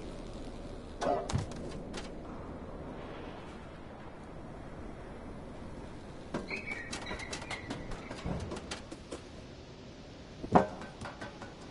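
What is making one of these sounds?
A cat lands and pads across a tin roof with light metallic thuds.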